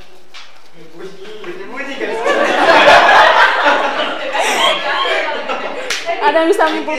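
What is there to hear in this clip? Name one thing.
Several young people chatter and talk over one another in a room.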